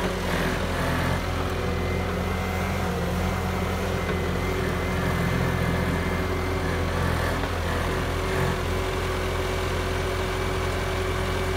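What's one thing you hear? A diesel skid-steer loader engine runs as the loader drives.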